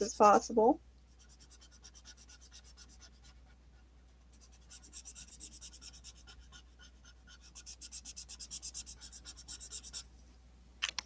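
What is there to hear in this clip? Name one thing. A felt marker scratches rapidly across paper in quick strokes.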